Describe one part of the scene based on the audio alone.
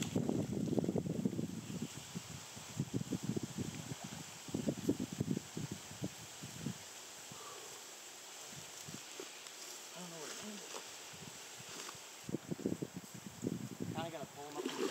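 A small stream flows and ripples.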